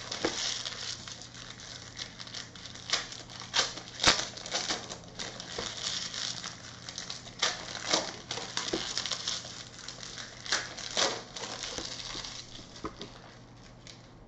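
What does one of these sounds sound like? Card packs rustle and crinkle as hands handle them up close.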